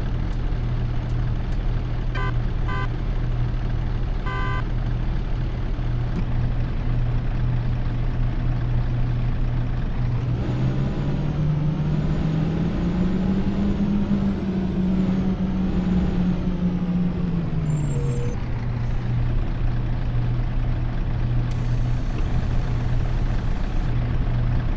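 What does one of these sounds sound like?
A bus engine idles with a low steady hum.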